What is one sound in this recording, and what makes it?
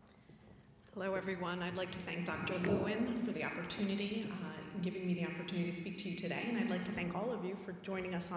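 A woman speaks into a microphone over a loudspeaker, in a large echoing hall.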